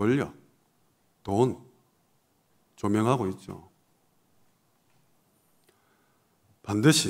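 A man speaks slowly and calmly into a microphone, in short phrases with long pauses.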